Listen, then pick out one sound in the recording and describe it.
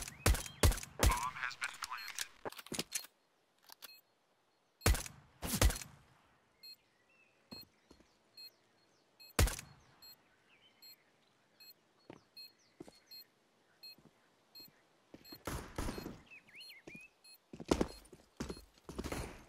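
Footsteps tap on a hard floor at a steady walking pace.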